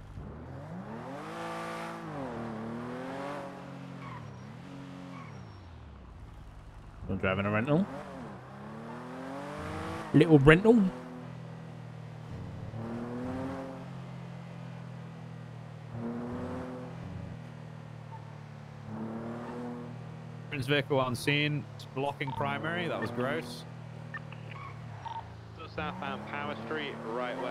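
A car engine revs up and down through the gears.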